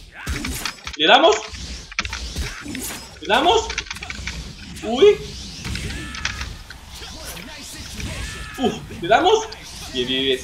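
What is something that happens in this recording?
Game weapons strike with sharp hits and whooshes.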